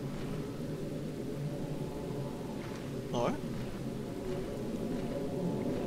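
Footsteps crunch slowly on soft ground.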